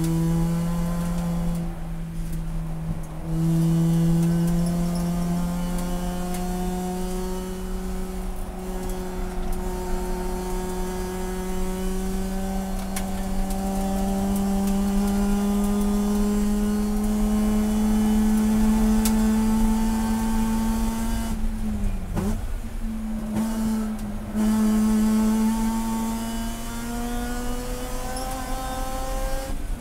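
A race car engine roars loudly from inside the car, rising and falling in pitch as it shifts and brakes.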